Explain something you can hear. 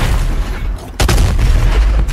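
A heavy blast booms and echoes.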